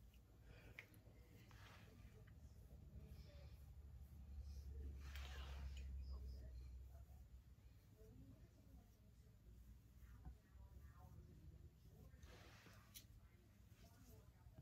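A makeup brush brushes softly against skin.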